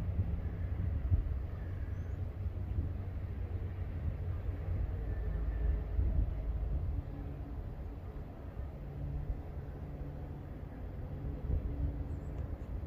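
Wind rumbles across an open outdoor space.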